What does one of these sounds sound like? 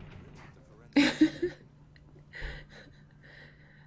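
A young woman laughs close to a microphone.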